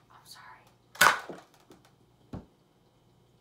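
A toy blaster clicks and snaps as it is handled.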